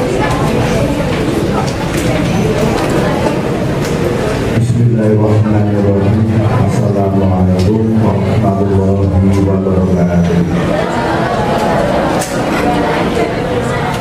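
A man sings through a microphone.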